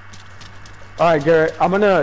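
A young man speaks loudly and with animation close to a microphone.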